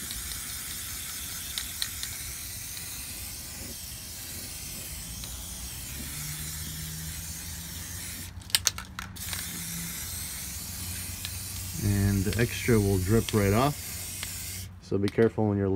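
A spray can hisses.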